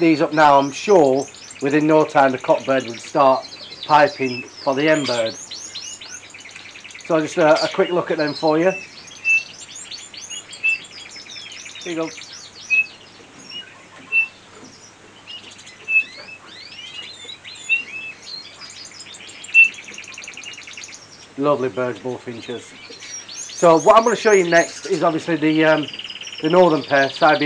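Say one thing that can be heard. Small birds chirp and twitter in high, thin notes.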